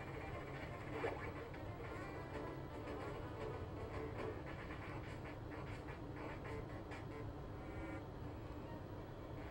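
Video game sound effects beep and blip.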